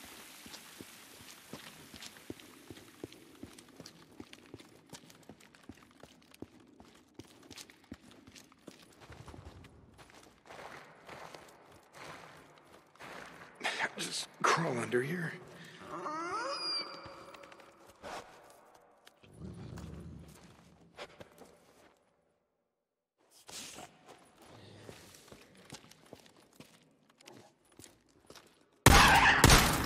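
Footsteps crunch slowly on gravel and rock.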